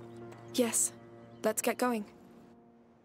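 A young girl speaks calmly.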